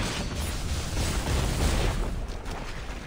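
An explosion bursts with a bright crackling blast.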